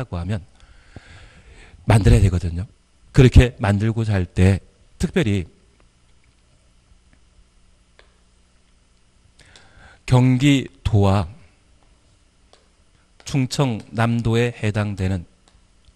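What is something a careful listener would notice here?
A man lectures with animation through a handheld microphone.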